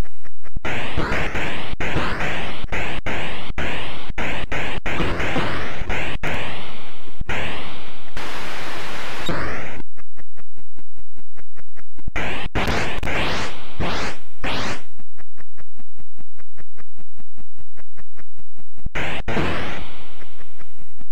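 Retro video game shots zap with quick falling tones.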